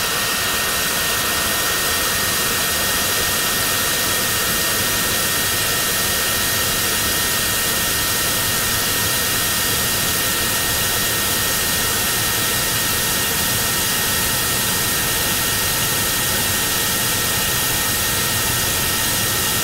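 Wind rushes loudly past during flight.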